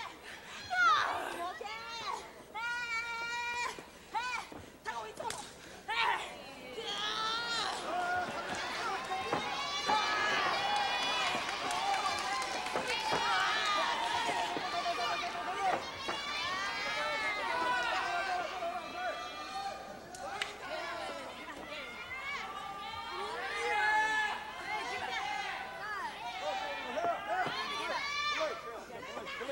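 A crowd of spectators cheers and shrieks in high voices in a large hall.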